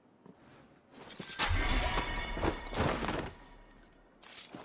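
Heavy thuds and scuffling ring out as a figure is suddenly grabbed and struck down.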